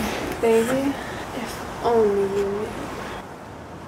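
A young woman speaks softly and closely.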